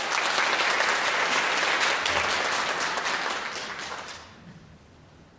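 An audience applauds in a large hall and the applause dies away.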